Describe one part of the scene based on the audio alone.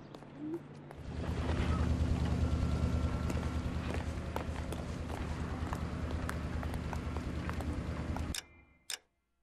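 Traffic rumbles along a busy city street.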